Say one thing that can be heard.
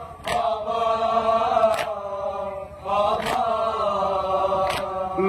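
A man chants a mournful recitation loudly through a microphone, outdoors.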